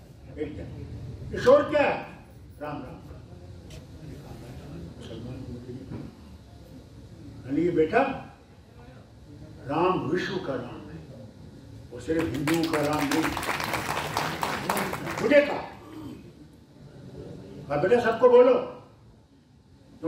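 An elderly man speaks with animation through a loudspeaker microphone.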